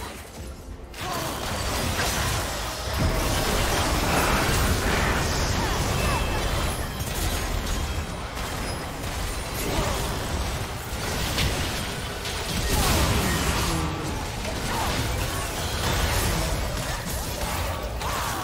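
Magic blasts and clashing spells boom and crackle in a hectic video game fight.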